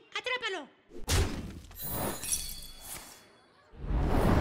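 A magical chime rings out brightly.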